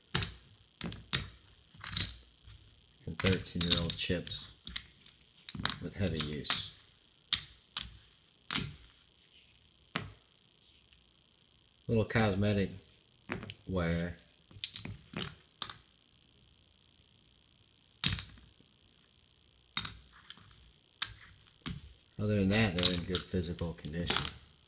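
Ceramic poker chips click together in a hand.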